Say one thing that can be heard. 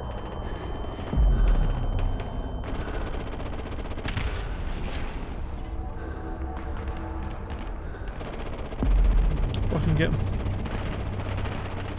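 Footsteps run quickly across rough ground.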